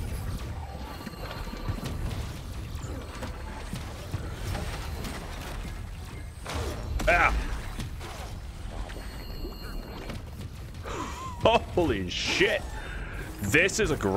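Low booming blasts rumble from a monster's attacks.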